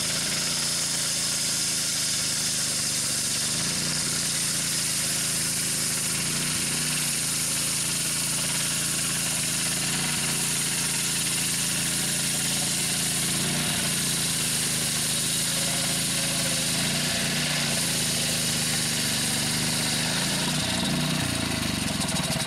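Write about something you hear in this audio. A circular saw blade whines as it cuts through wood.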